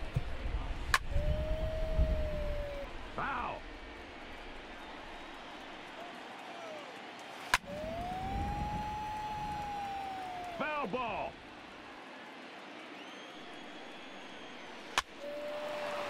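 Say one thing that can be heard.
A wooden bat cracks against a baseball.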